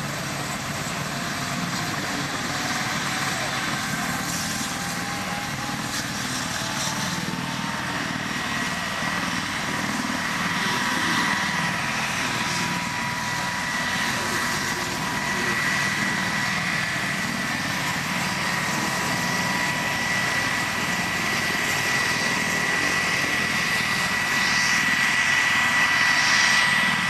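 A helicopter engine whines steadily with a high turbine tone.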